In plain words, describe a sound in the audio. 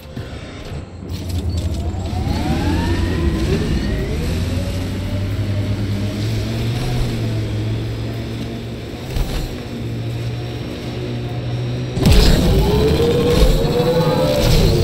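A vehicle engine hums and revs up as it drives off.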